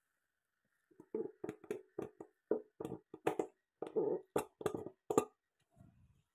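A pump bottle squirts liquid into a plastic cup in short bursts.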